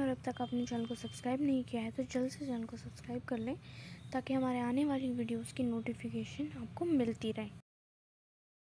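A young woman sings a melody close by.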